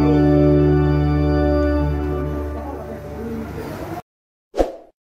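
A pipe organ plays full, sustained chords and then stops.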